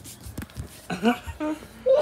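A puppy whimpers close by.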